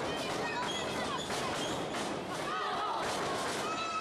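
A body slams onto the wrestling mat with a heavy thud.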